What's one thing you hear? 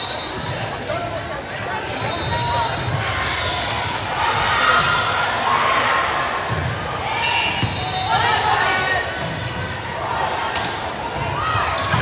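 A crowd of spectators cheers and chatters in a large echoing gym.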